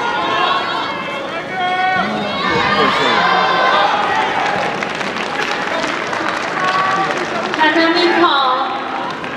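A crowd in a large echoing hall shouts and cheers.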